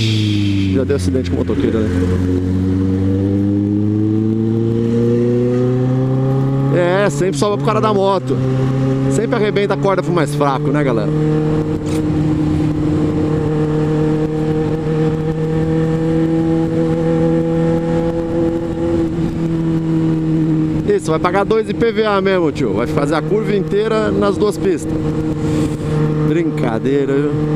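A motorcycle engine hums steadily, rising slightly in pitch as the bike speeds up.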